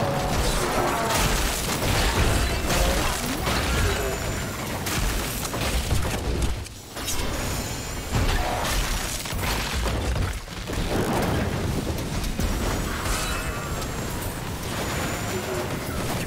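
Laser beams hum and sizzle.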